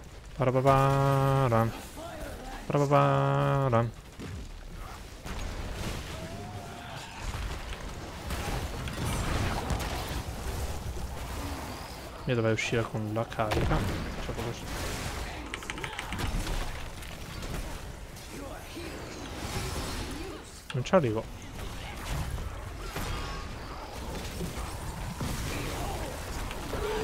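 Game spells and attacks crackle and boom in a busy fight.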